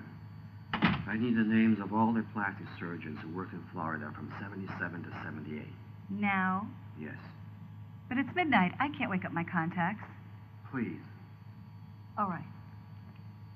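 A woman speaks quietly and tensely close by.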